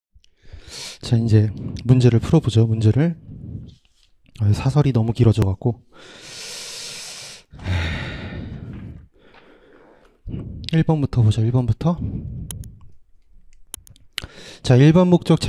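A young man speaks calmly into a microphone, lecturing.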